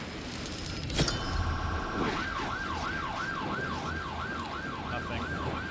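A police siren wails close by.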